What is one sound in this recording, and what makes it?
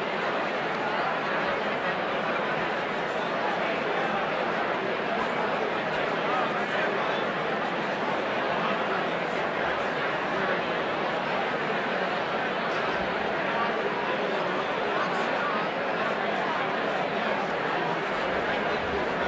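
A large crowd chatters and murmurs steadily in a big echoing hall.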